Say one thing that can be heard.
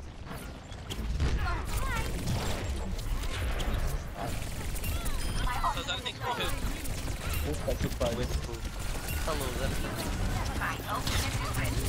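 Guns fire rapidly in a game.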